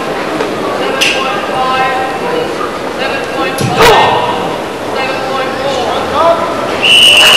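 A karate uniform snaps sharply with quick strikes.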